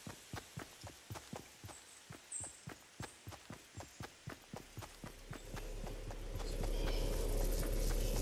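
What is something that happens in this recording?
Footsteps thud quickly and steadily on grass.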